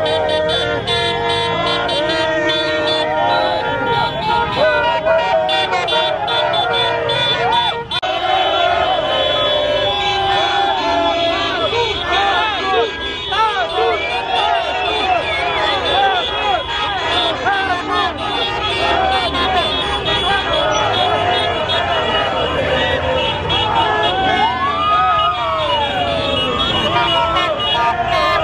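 A crowd of men and women cheers and shouts loudly outdoors.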